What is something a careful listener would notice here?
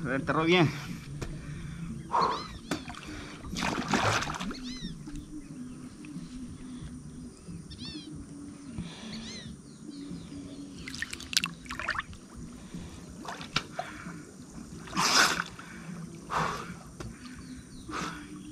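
Water splashes around a swimmer.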